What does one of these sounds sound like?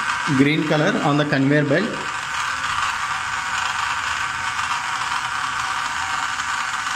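A small electric motor hums steadily.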